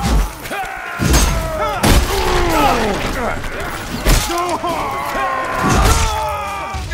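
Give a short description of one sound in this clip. Swords clash and clang in a close fight.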